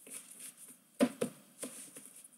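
Trading cards tap and shuffle in a stack.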